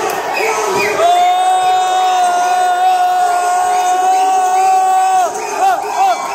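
A man holds a long, loud, steady cry.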